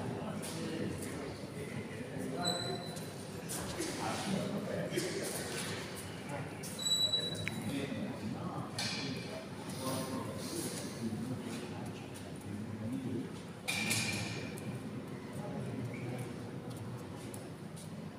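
Men talk nearby in a large echoing hall.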